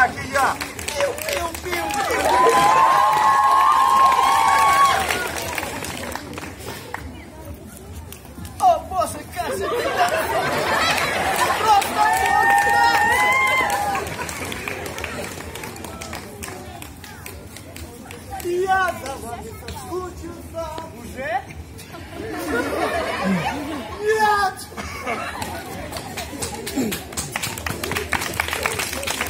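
A group of young people and children chant and sing loudly in bursts outdoors.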